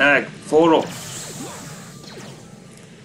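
An explosion bursts in a video game.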